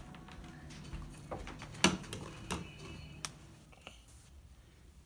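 A young child climbs wooden stairs with soft thumps.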